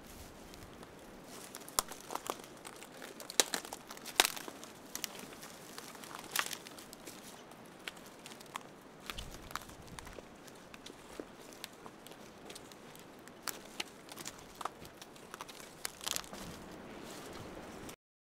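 Dry twigs snap and crackle underfoot.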